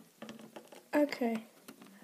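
A small plastic toy taps softly against a plastic surface.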